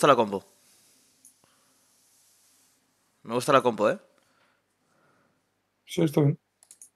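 A young man speaks in short bursts, close to a microphone, with animation.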